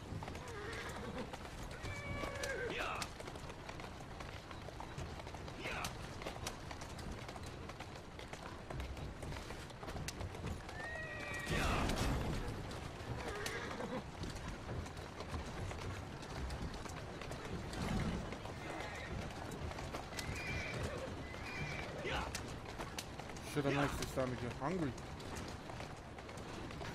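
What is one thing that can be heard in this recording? Carriage wheels rumble over a cobbled street.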